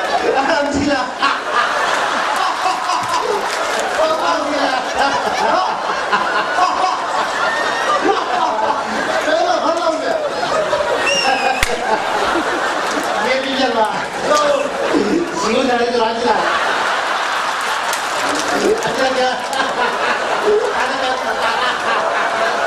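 An elderly man speaks animatedly through a microphone.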